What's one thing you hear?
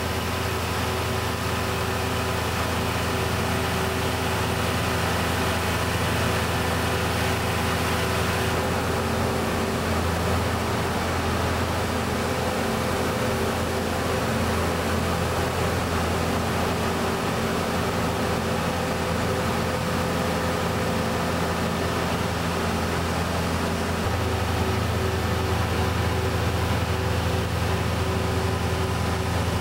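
Grain pours onto a large pile in a hissing rush.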